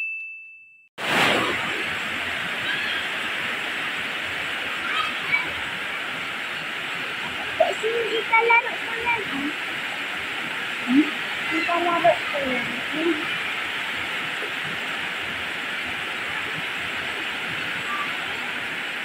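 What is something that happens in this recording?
Heavy rain pours steadily onto leaves and the ground outdoors.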